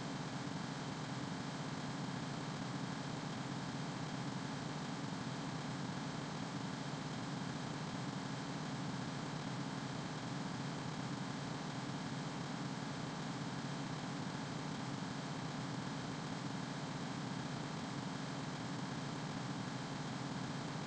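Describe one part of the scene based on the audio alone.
Jet engines roar steadily inside an airliner's cockpit.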